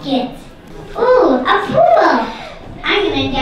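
A young girl speaks through a microphone.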